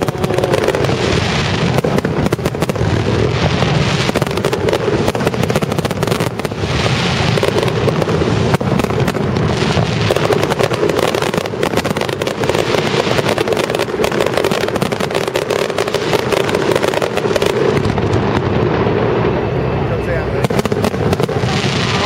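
Fireworks burst and boom in rapid succession.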